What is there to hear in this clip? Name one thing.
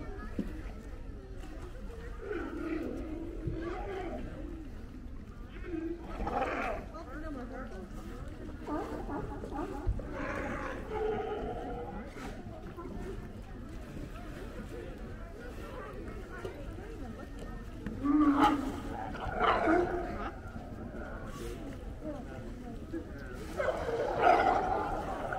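Many sea lions bark and groan loudly, close by.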